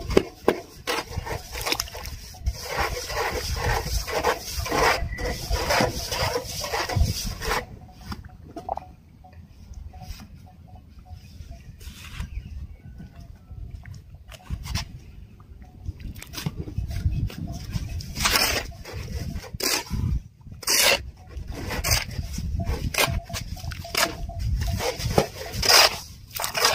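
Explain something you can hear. A shovel scrapes and scoops wet cement on a concrete floor.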